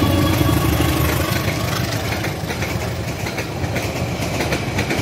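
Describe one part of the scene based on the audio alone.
Train wheels clatter rhythmically over the rails.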